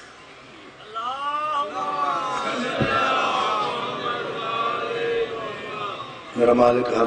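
A large crowd of men calls out together in a loud chant.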